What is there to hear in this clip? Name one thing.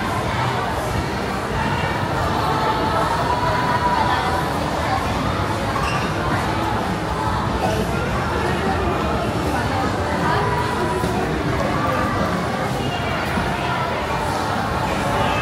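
A crowd of people chatters steadily in a large echoing hall.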